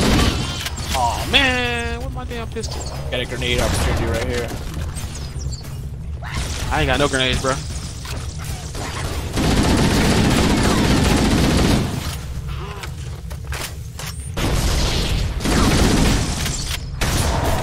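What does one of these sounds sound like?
Energy weapons fire whizzing bolts.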